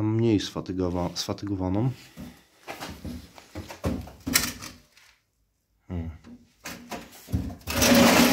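A hand knocks and shifts a thin metal case.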